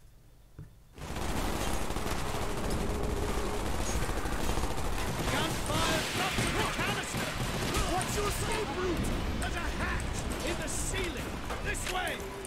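Pistol shots fire in rapid bursts.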